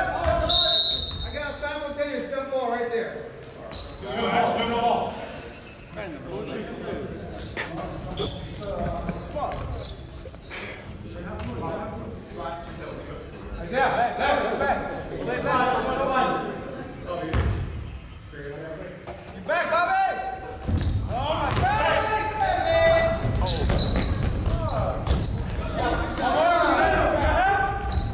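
Basketball players shout and call out to each other in a large echoing gym.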